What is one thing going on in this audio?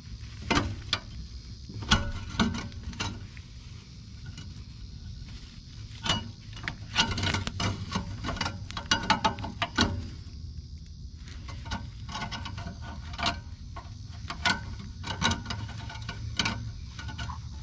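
Dry grass rustles close by.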